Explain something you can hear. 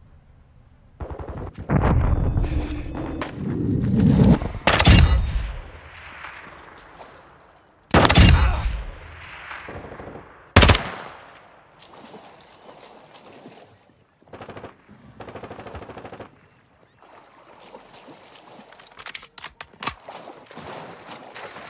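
Water splashes and sloshes as someone wades through it.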